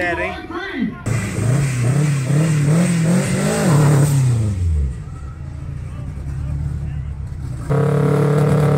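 A car engine idles with a deep rumble.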